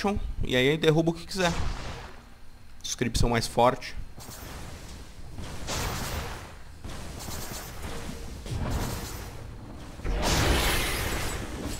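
Game combat effects clash and crackle.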